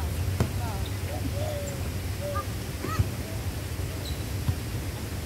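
Young people call out to each other outdoors.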